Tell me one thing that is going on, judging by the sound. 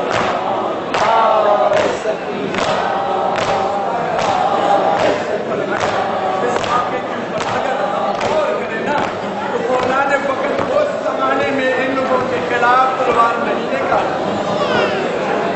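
A crowd of men chants loudly together outdoors.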